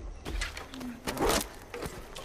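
Dry branches rustle and scrape as something pushes through them.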